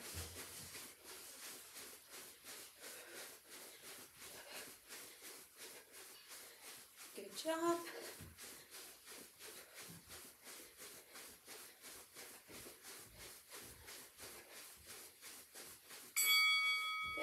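Feet thump rhythmically as a person jogs in place.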